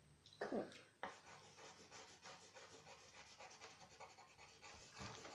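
Pencils scratch on paper.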